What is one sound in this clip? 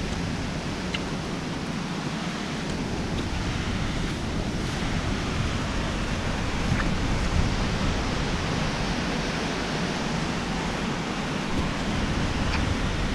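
A waterfall roars steadily nearby.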